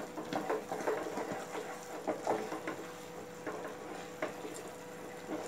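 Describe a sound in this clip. A wooden spoon stirs thick sauce in a metal pot, scraping and squelching.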